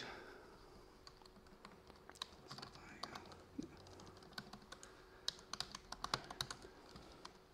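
Keys click as a man types on a laptop keyboard.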